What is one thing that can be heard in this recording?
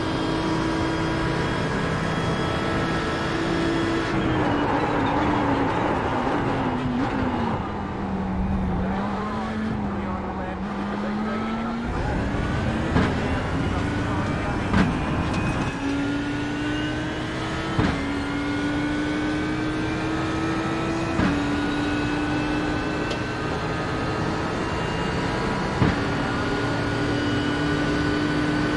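A racing car engine roars, dropping in pitch under braking and then revving up again through the gears.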